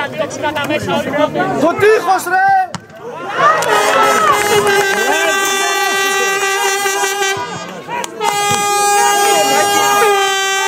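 Men shout in the distance across an outdoor football pitch.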